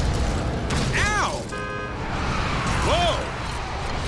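A car crashes into another car with a thud.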